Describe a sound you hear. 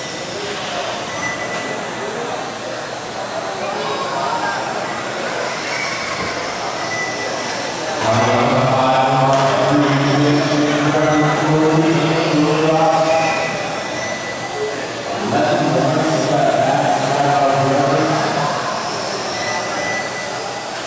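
Small electric racing cars whine as they speed around a track.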